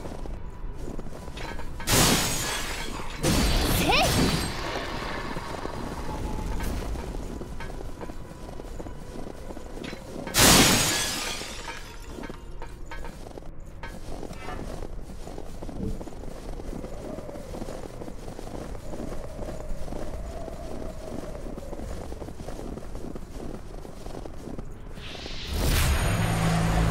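Blades clash and strike with sharp hits.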